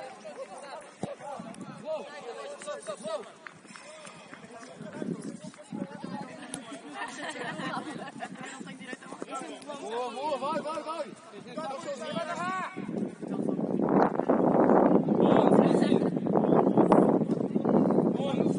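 Men shout to each other from a distance outdoors.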